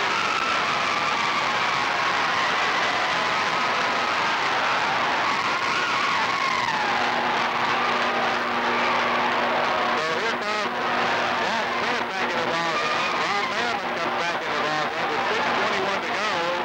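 A large crowd cheers and shouts loudly in an echoing gym.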